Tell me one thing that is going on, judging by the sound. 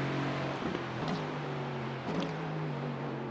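A racing car's engine pops and crackles on downshifts.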